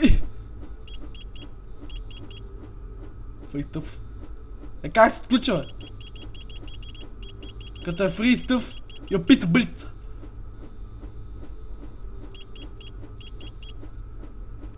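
Game beeps sound as keypad buttons are pressed.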